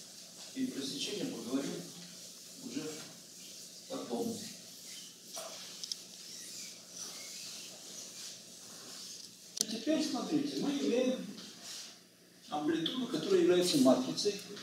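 An elderly man lectures calmly in an echoing room.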